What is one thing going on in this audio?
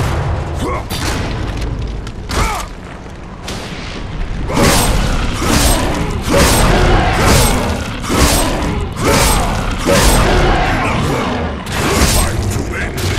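A blade stabs into flesh with heavy, wet blows.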